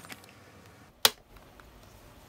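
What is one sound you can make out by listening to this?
Metal binder rings snap shut with a sharp click.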